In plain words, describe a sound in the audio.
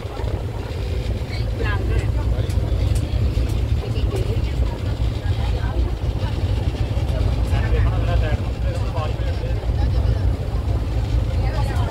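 Strong wind rumbles and buffets outdoors.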